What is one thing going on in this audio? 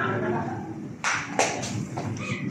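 A pool cue strikes a billiard ball with a sharp click.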